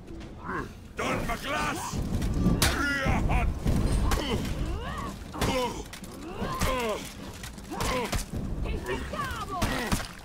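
Metal blades clash and clang in a close fight.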